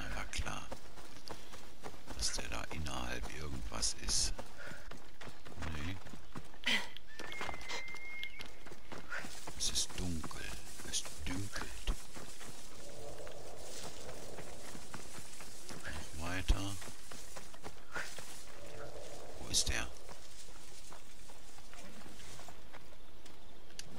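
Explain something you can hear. Footsteps run over soft ground.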